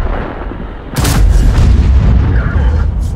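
A tank engine rumbles loudly as the tank drives along.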